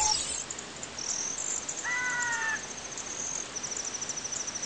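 Soft electronic blips tick rapidly as text scrolls.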